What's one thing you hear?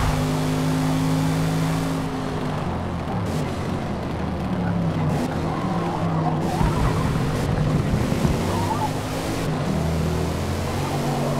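A car engine roars and changes pitch as the driver shifts gears.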